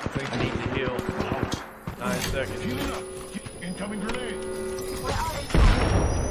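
An electronic healing device hums and whirs as it charges.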